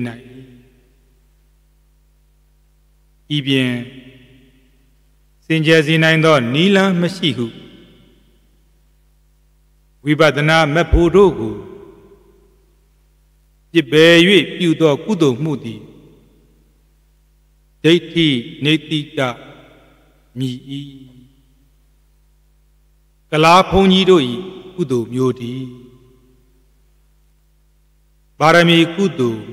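A man speaks calmly into a microphone in short phrases with pauses between them.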